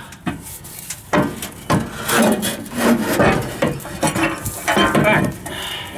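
Metal tools clink against a car's underside.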